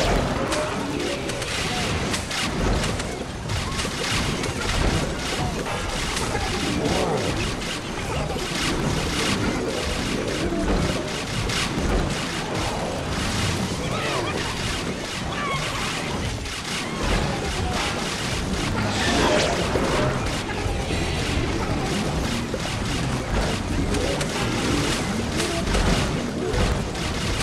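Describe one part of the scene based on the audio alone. Game sound effects pop and burst rapidly.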